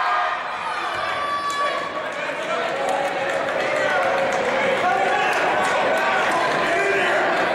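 A crowd chatters and calls out throughout a large echoing gym.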